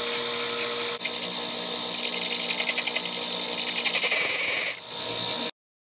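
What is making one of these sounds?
A drill bit cuts into metal with a harsh, rhythmic screech.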